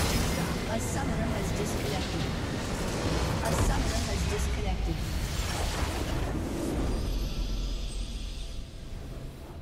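Loud magic blasts and crashes from a battle in a video game.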